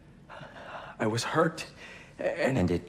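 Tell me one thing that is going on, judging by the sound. A man in a mask answers in a low, calm voice.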